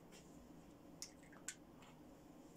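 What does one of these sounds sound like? A small hard object clicks sharply in someone's hands.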